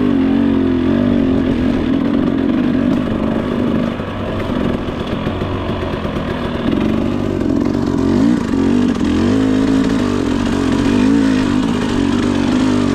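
Tyres crunch over a rough dirt trail.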